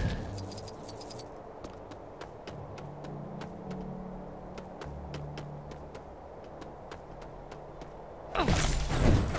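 Quick light footsteps patter steadily on the ground.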